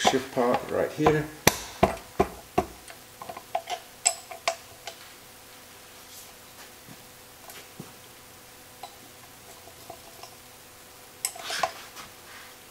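Metal tools clink and tap against metal parts.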